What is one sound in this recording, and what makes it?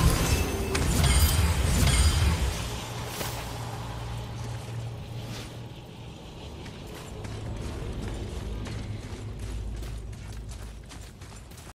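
Heavy footsteps thud and crunch on stone in a large echoing cave.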